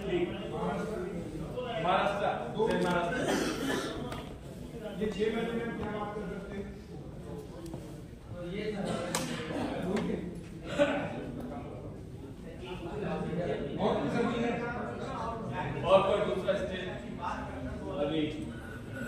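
A man speaks calmly to a seated group in a large room with a slight echo.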